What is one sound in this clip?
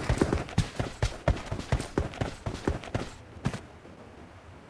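Quick footsteps patter on hard ground.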